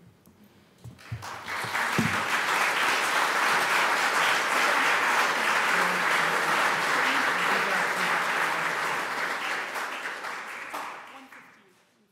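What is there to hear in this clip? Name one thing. An audience applauds loudly and steadily, then fades.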